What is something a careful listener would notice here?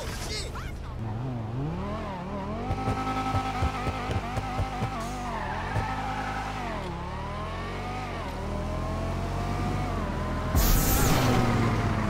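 A sports car engine revs up and down, then roars at speed.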